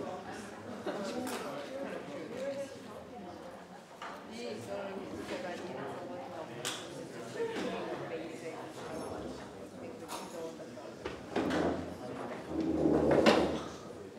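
A man speaks steadily into a microphone over loudspeakers in a large echoing hall.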